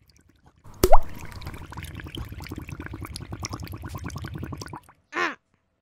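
Liquid bubbles and gurgles rapidly.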